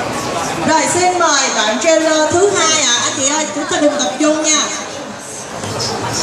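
A young woman speaks into a microphone, heard through loudspeakers in a large echoing hall.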